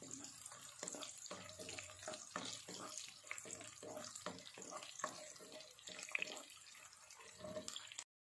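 A wooden spatula scrapes and stirs pieces in a pan.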